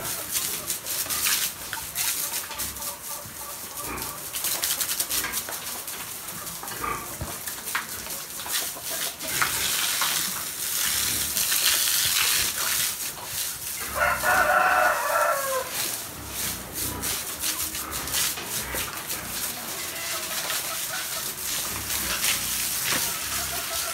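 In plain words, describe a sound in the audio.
A hose sprays water hard onto a wet floor.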